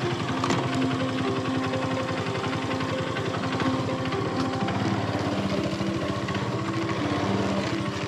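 A motorcycle engine drones steadily as the bike rides along.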